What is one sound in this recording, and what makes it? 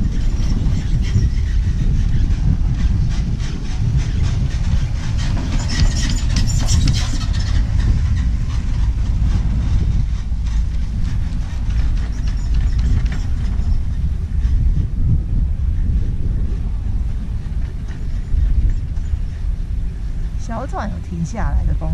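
Wind buffets loudly against the microphone outdoors.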